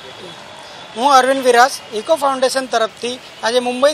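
A man speaks calmly into a microphone, close by.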